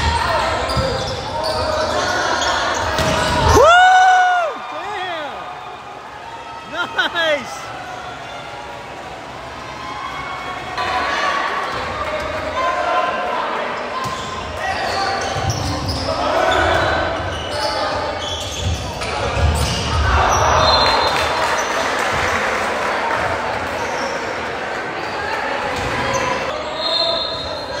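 A crowd of young spectators chatters and cheers.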